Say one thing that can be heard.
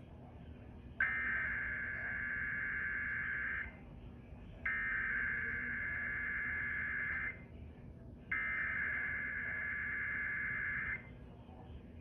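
A harsh alert tone blares from a television loudspeaker in three long bursts.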